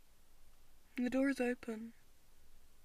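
A young woman speaks briefly and softly nearby.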